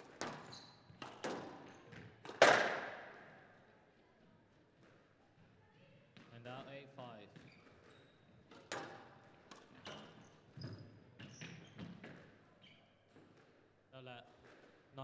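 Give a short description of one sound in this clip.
Sneakers squeak on a court floor.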